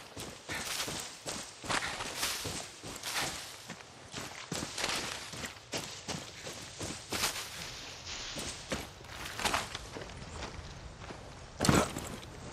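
Footsteps crunch and rustle through dense undergrowth.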